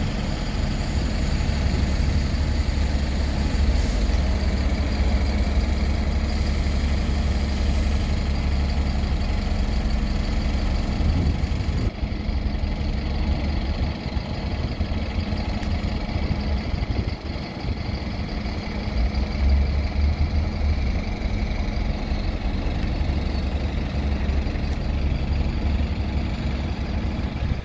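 Bus engines rumble steadily nearby.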